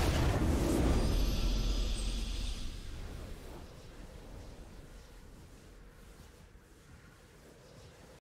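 A triumphant victory fanfare plays and slowly fades.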